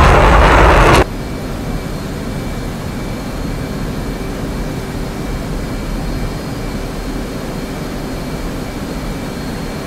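A jet engine hums steadily, muffled inside a cockpit.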